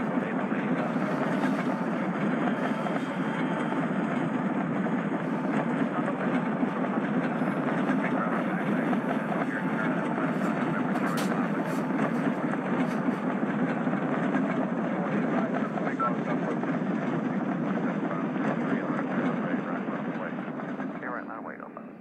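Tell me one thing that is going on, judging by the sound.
Rain patters on a cockpit windshield.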